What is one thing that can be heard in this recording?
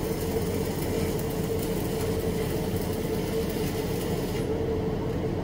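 A welding arc hisses and crackles.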